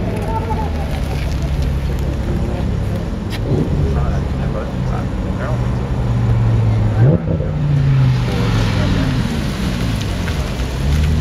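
A sports car engine revs and roars nearby.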